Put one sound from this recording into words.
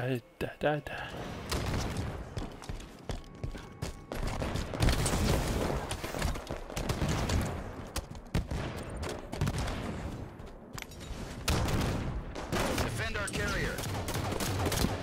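Footsteps thud and clank as a player character runs in a video game.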